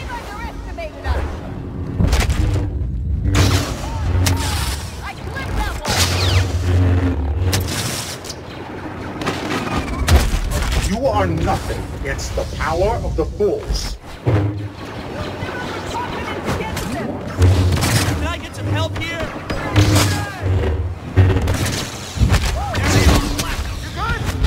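Lightsabers hum and clash in a duel.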